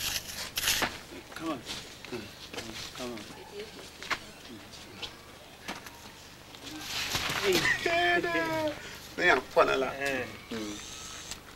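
Hands scrape and scoop loose earth.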